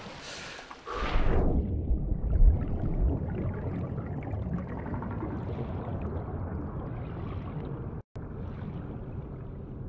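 Water bubbles and rumbles steadily underwater.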